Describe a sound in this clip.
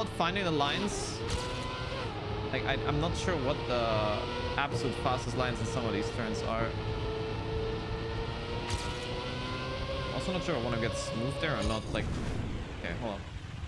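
A racing car engine whines and revs up and down.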